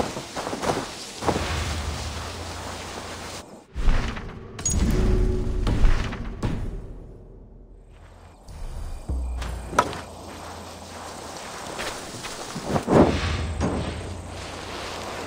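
Tall grass rustles as someone moves through it.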